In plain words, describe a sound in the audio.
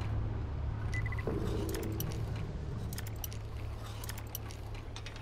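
Lock picks scrape and click inside a metal lock.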